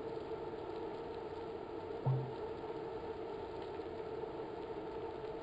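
A bicycle wheel whirs steadily on an indoor trainer.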